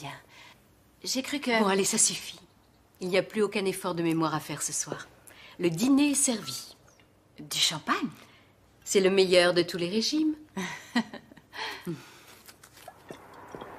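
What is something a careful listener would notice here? A second young woman answers in a friendly voice up close.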